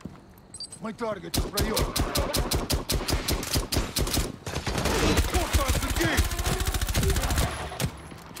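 Rapid gunfire bursts loudly and repeatedly.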